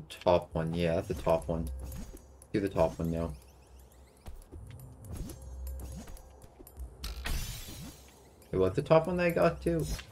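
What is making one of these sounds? Light whooshing game effects play as a small figure glides.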